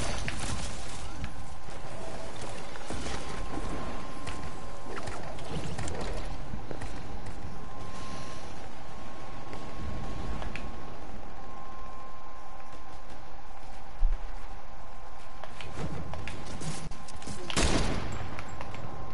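Wind rushes steadily past a gliding game character.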